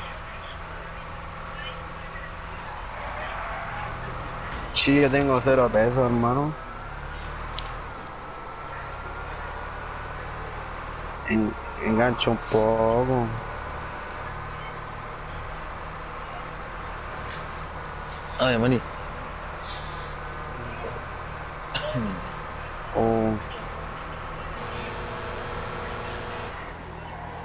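Truck engines rumble and roar.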